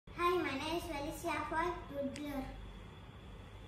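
A young girl speaks clearly, close by.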